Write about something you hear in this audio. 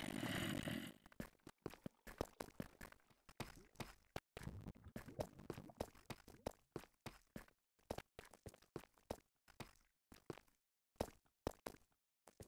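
Video game footsteps tap on stone.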